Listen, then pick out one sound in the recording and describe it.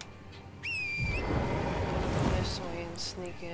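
A magical whoosh swells and shimmers.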